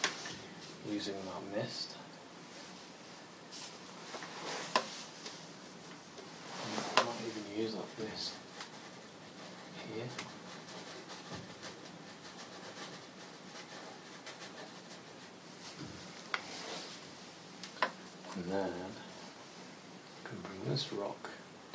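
A man talks calmly close by, in short phrases with pauses.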